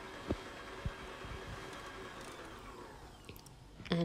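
An electric stand mixer whirs steadily, then winds down.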